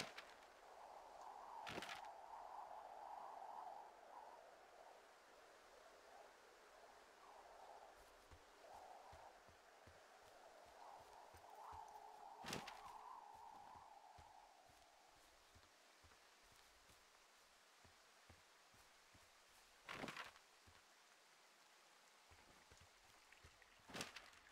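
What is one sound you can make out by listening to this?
Footsteps crunch through dry grass.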